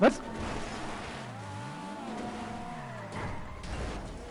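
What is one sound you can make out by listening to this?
Tyres screech as a car skids.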